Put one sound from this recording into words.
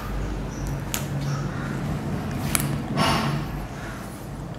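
A marker taps on a whiteboard.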